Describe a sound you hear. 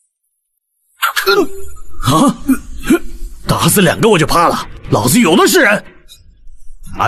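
A young man speaks coldly and firmly.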